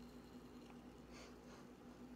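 A young man sips a drink.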